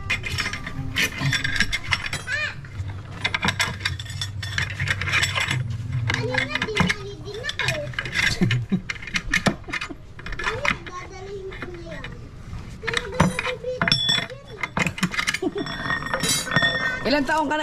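A hammer taps on metal rods, in sharp quick knocks.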